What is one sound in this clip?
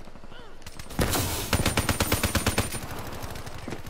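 A rapid burst of automatic gunfire rattles loudly.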